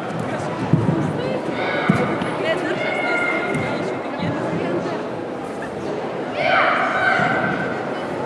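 People murmur in the background of a large hall.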